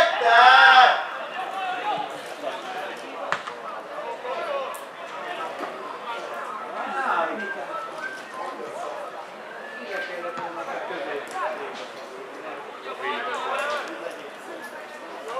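Men shout and call to each other outdoors.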